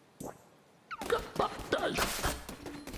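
Loud, busy game sound effects burst in and go on.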